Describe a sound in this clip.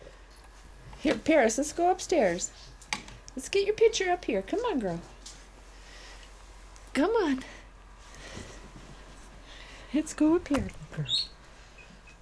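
A puppy whines and yelps in short high bursts.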